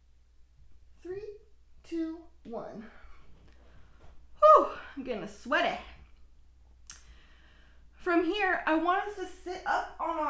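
A young woman talks calmly, close by, in short phrases with pauses.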